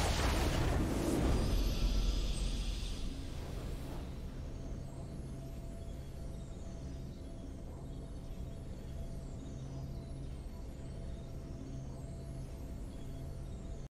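A triumphant game fanfare bursts out and then fades into soft, steady music.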